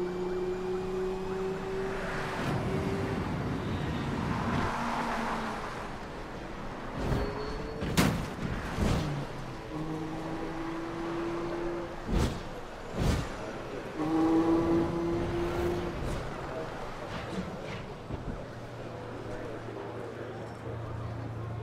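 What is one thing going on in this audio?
A sports car engine roars and revs.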